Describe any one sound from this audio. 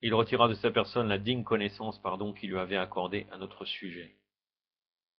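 A man speaks calmly into a microphone, as if over an online call.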